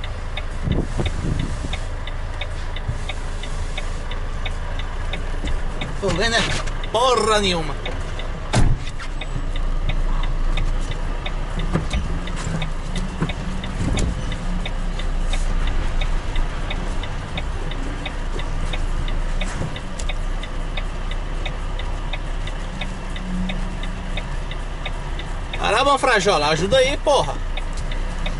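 A vehicle engine hums steadily from inside the cab.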